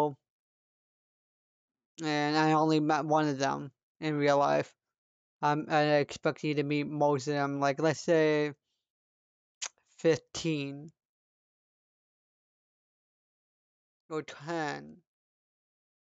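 A young man talks with animation into a close microphone, pausing now and then.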